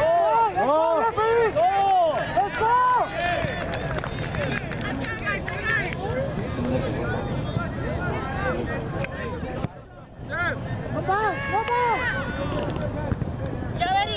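A crowd of men and women shout and cheer outdoors, heard from a distance.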